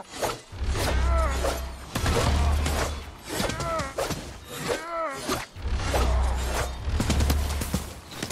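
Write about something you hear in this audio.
Arrows whoosh past.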